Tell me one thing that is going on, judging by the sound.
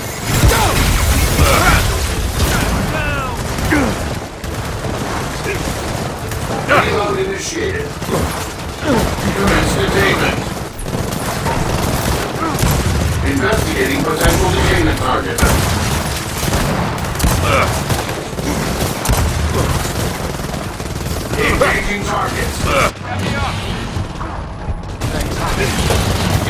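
Rapid gunfire rattles loudly in bursts.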